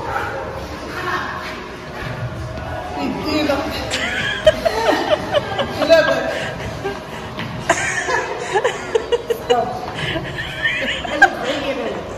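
Another woman laughs close by.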